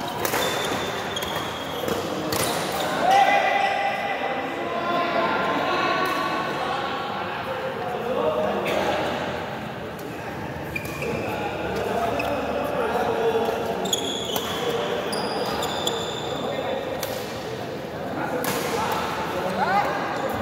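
Sports shoes squeak on a hard court floor.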